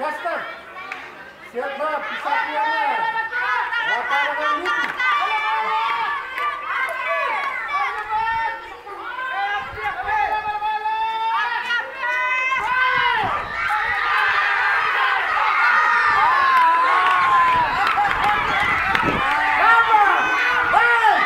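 A group of children shout and cheer outdoors, growing louder and more excited.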